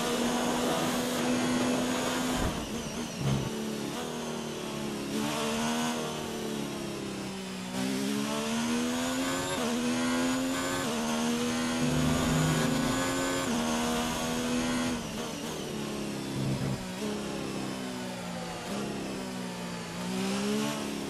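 A racing car engine screams at high revs, rising and dropping in pitch as gears shift.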